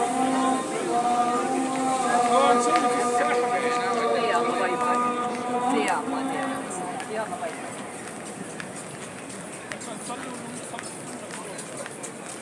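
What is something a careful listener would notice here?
Many footsteps shuffle on a hard floor.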